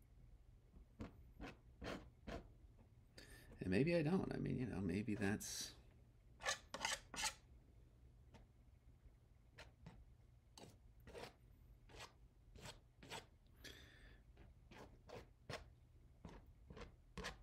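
Scissors snip sharply through thin plastic, again and again.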